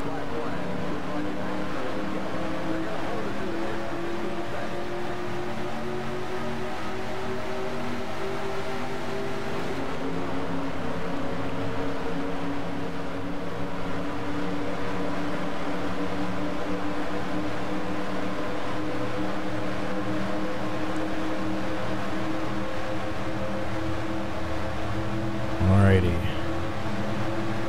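Race car engines roar steadily at high speed.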